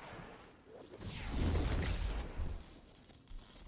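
A video game energy weapon fires a beam.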